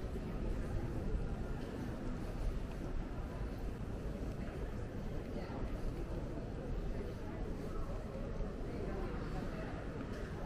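Suitcase wheels roll steadily across a smooth floor.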